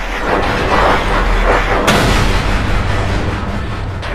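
A car explodes with a loud boom.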